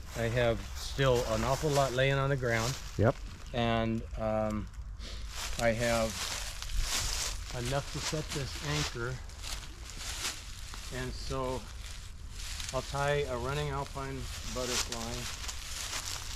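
A man talks calmly and explains, close by.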